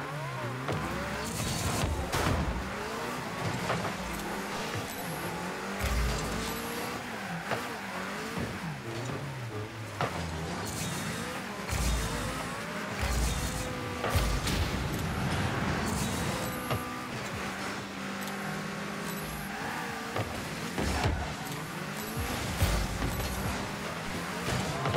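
A ball thuds against a car.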